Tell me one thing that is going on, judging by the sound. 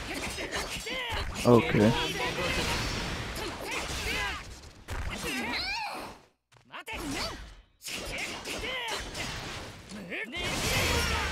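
Swords swish and clash in quick strikes.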